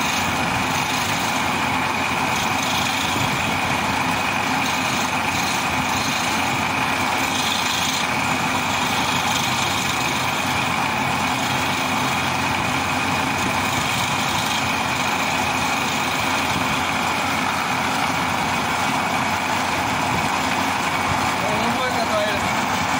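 A lathe motor hums and whirs steadily.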